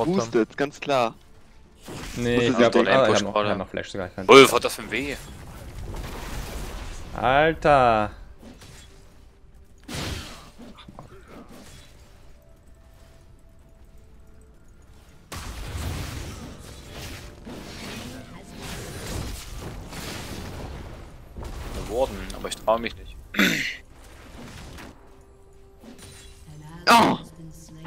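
Magic blasts and weapon hits clash in a fast fantasy battle.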